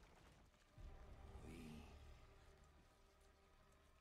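A young woman speaks anxiously.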